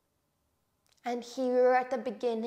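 A young woman speaks calmly into a clip-on microphone, close by.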